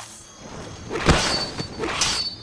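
A fiery blast bursts with a loud whoosh.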